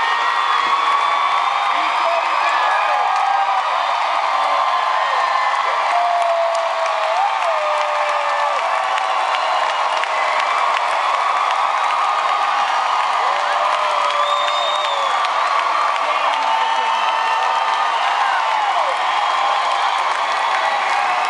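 A large crowd cheers and screams loudly in a big echoing arena.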